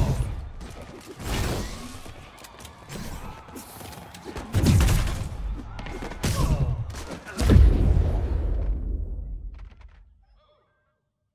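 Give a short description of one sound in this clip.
Punches and blows land hard in a video game fight.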